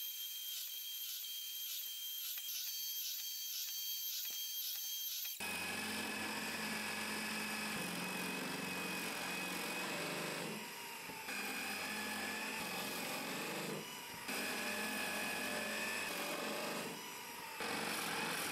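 A drill bit bores into wood.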